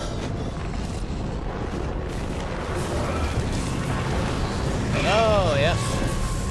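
Explosions roar with a deep, steady rumble.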